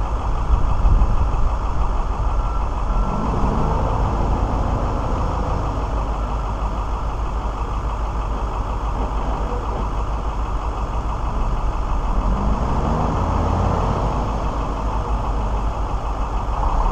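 A truck engine rumbles and revs in the distance.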